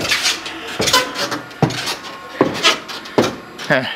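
Footsteps thud on a wooden ladder.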